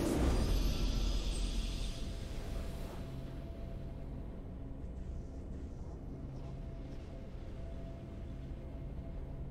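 A calm, triumphant game tune plays softly.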